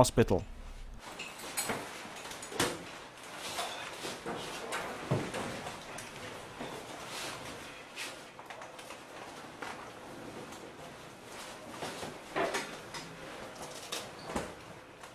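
A wheeled stretcher clatters and rattles as it is moved.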